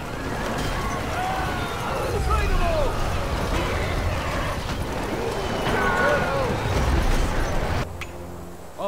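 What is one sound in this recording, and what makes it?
Horses gallop across the ground.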